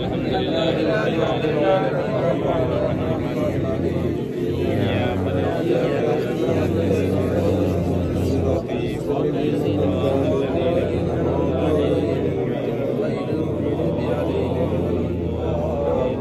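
Wind rumbles across a microphone.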